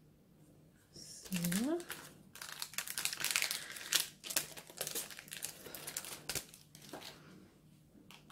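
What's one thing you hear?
A plastic sticker sheet crinkles and rustles close by.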